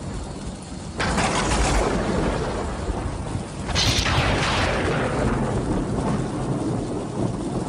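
Thunder cracks and rumbles loudly.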